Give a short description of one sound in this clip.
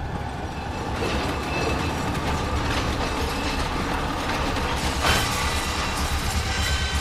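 Metal wheels screech and clatter on the rails.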